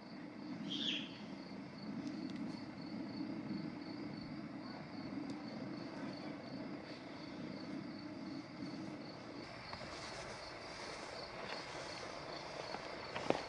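A paint roller rolls softly across wood.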